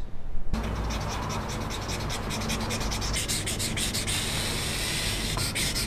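A pen scratches in quick, repeated strokes on metal.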